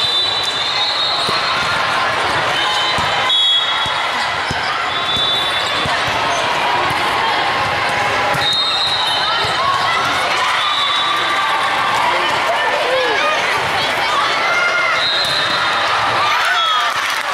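A volleyball is struck with dull slaps.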